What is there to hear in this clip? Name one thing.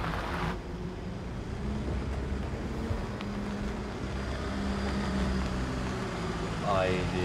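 A van engine rumbles as it drives slowly closer.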